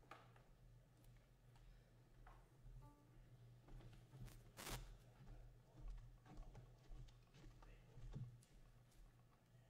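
Footsteps move softly across a carpeted floor.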